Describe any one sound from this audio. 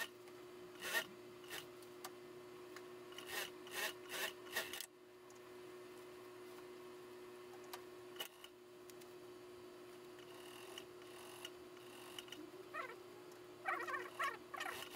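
A sewing machine hums steadily.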